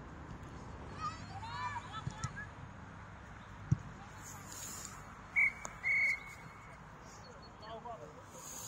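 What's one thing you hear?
Players shout to each other across an open field.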